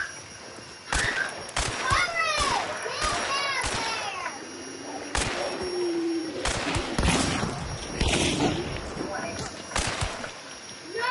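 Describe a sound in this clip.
Gunshots ring out loudly, several times.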